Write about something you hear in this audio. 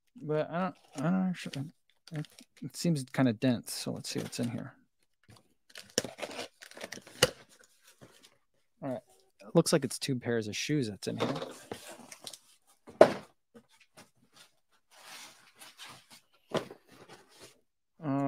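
Cardboard rustles and scrapes as a box is opened.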